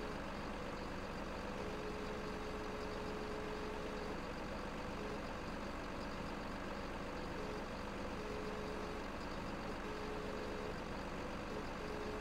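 A diesel engine hums at a low idle.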